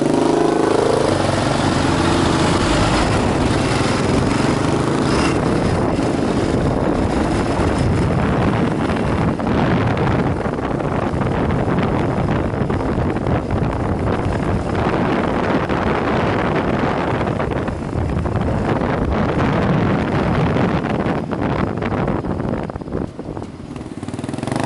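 Wind rushes loudly past the rider's helmet.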